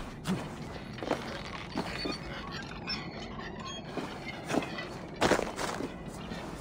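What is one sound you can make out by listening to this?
Footsteps thud on a wooden surface.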